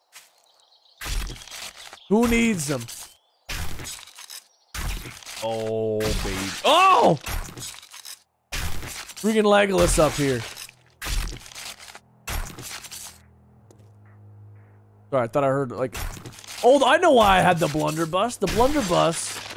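A young man talks animatedly into a microphone.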